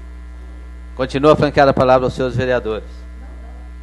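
A man speaks briefly and calmly through a microphone.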